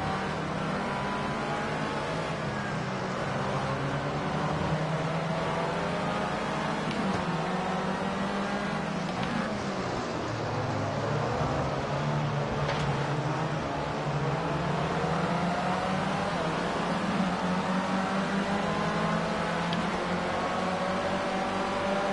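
A racing car engine whines loudly, rising and falling in pitch as the car speeds up and brakes.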